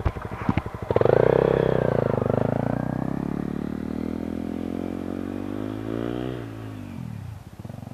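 A motorcycle accelerates away up a gravel road, its engine fading.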